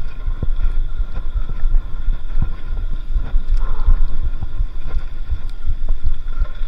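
Bicycle tyres crunch and rattle over a gravel path.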